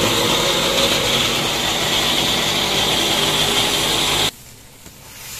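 A mixer grinder whirs loudly and steadily, then stops abruptly.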